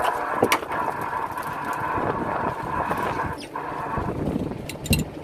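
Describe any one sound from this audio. A motorised winch whirs with a steady whine, then stops.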